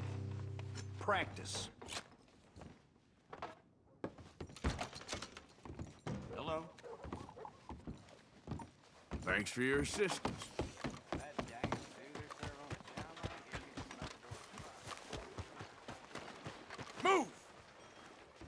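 A man speaks in a calm voice nearby.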